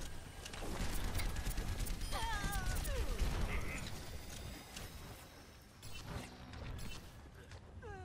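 Rapid gunfire blasts loudly in a video game.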